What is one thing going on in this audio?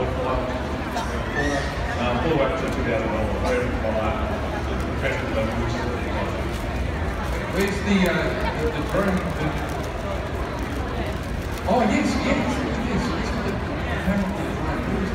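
A crowd of spectators chatters nearby in an open-air stadium.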